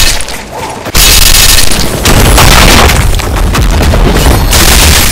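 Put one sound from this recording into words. Explosive magic blasts boom loudly.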